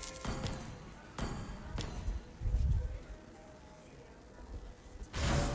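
Video game sound effects whoosh, chime and thump in quick bursts.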